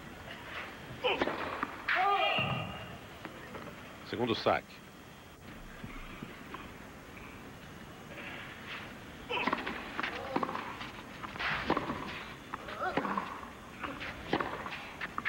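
A tennis ball is struck hard with a racket, again and again.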